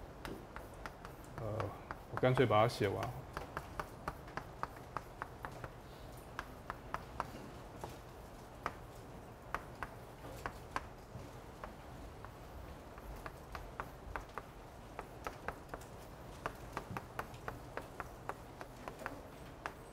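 Chalk taps and clicks rapidly against a blackboard.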